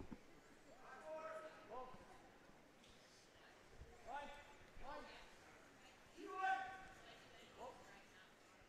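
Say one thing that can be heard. Men shout short calls over and over.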